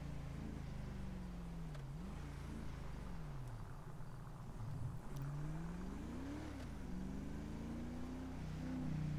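An engine revs up and down as a car drives, shifting gears.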